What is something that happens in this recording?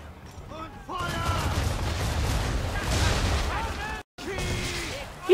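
Cannons fire in loud, booming blasts.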